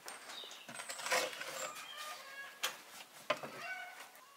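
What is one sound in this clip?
A metal oven door scrapes and clanks.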